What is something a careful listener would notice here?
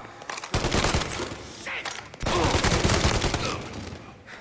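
A submachine gun fires rapid bursts that echo off hard walls.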